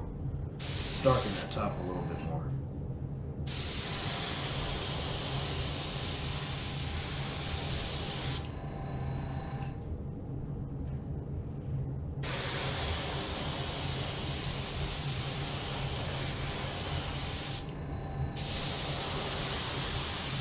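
An airbrush hisses steadily in short and long bursts.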